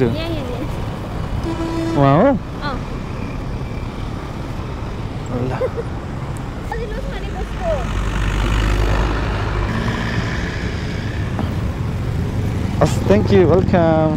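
A motorcycle engine idles and putters close by.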